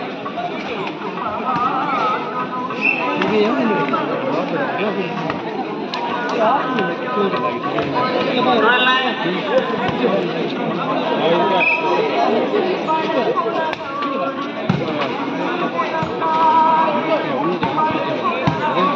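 A large outdoor crowd chatters, shouts and cheers throughout.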